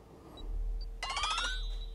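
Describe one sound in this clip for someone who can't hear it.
Soft electronic whooshes sound as cards are dealt.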